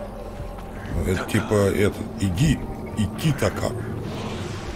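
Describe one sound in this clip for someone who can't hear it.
A man speaks with animation through a close microphone.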